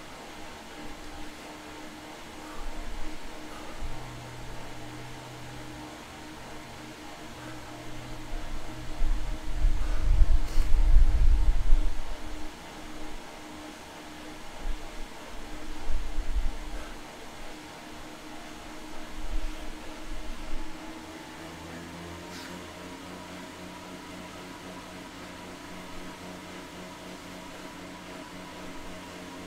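A man breathes heavily close by.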